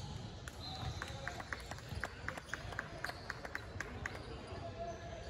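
A basketball bounces repeatedly on a hard floor in a large echoing hall.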